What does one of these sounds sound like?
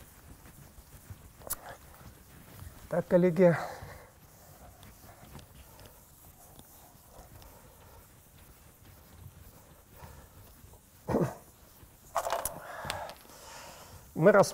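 A cloth wipes across a chalkboard.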